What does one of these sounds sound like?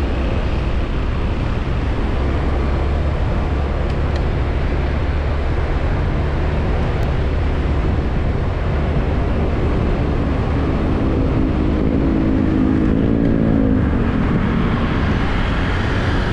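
Wind rushes past loudly outdoors.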